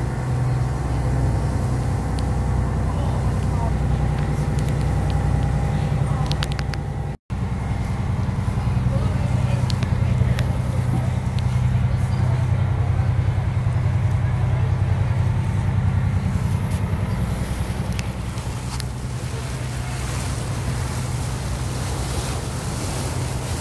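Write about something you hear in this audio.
A boat engine drones steadily and low.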